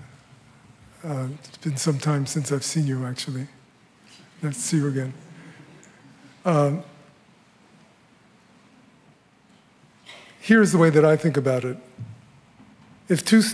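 An older man answers through a microphone, speaking calmly with pauses.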